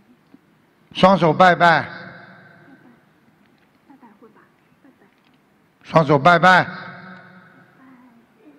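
An elderly man speaks loudly and slowly through a microphone, echoing in a large hall.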